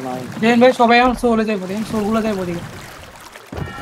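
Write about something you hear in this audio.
Oars splash and creak as a rowing boat moves through water.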